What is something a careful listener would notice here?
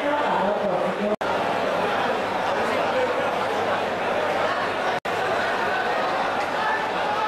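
A large crowd roars and chatters loudly in an echoing arena.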